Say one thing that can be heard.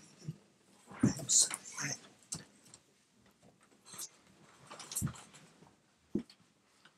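A wicker chair creaks as a man gets up.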